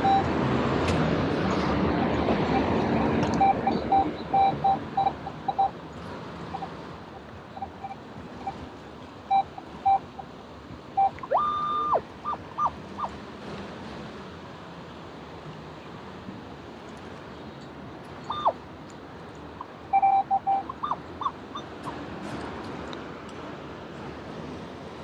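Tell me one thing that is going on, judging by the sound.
Water swirls and bubbles close by.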